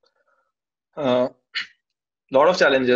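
A young man speaks calmly over an online call.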